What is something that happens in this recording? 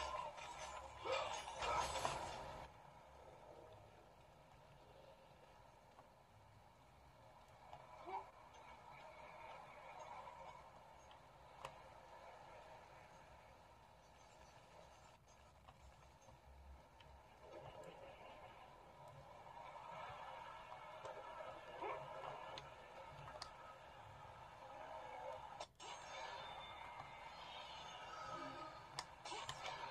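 Video game audio plays from a tablet's small speaker.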